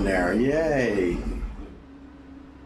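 A man speaks with animation, close into a microphone.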